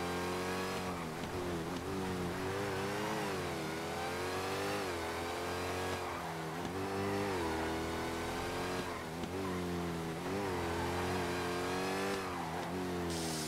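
Tyres screech on the road through the bends.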